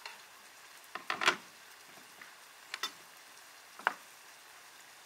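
A knife chops vegetables on a wooden board.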